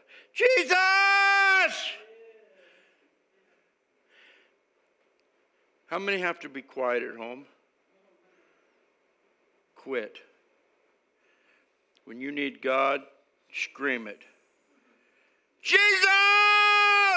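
An elderly man speaks with animation into a microphone, in bursts with pauses, his voice echoing in a large room.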